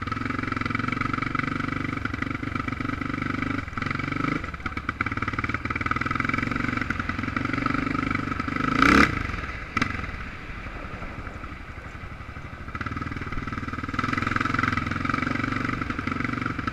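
A drone's propellers whine steadily.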